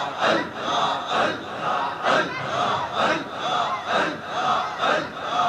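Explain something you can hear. An elderly man chants a sermon in a slow, sung voice through a microphone and loudspeakers.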